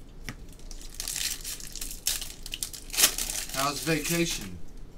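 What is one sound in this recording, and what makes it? Card packs rustle and crinkle as they are handled.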